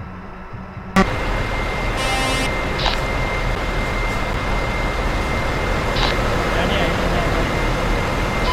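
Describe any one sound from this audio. A truck engine idles with a steady low rumble.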